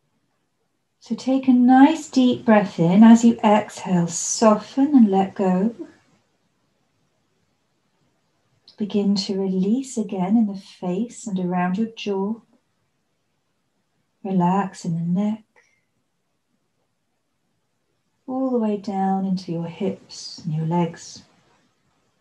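A woman speaks calmly and softly, close by, with pauses.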